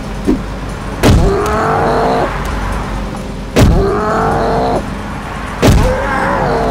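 A toy gun fires with sharp, loud bangs.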